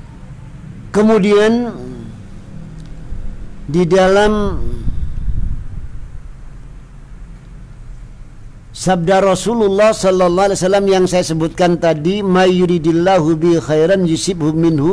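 A middle-aged man chants melodically into a close microphone, reading aloud.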